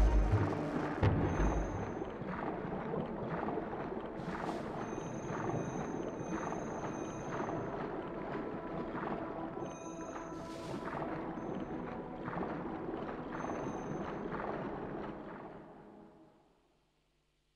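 Water bubbles and swishes as a swimmer glides underwater.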